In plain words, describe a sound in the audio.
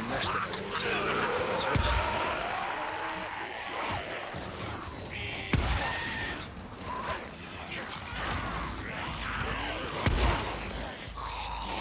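Creatures shriek and snarl nearby.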